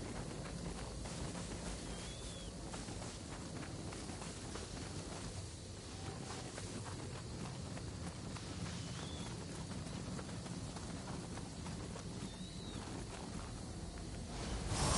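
Footsteps crunch on a forest path.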